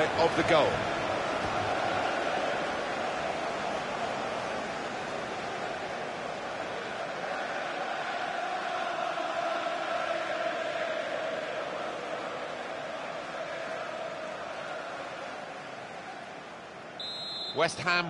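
A stadium crowd cheers and roars loudly.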